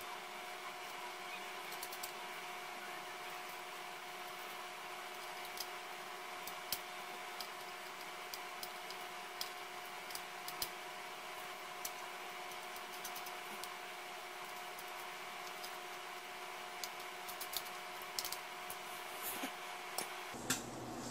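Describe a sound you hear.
Small light clicks and taps come from a thin metal drive bracket being handled.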